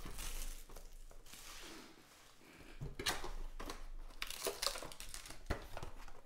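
A cardboard box lid slides and scrapes open.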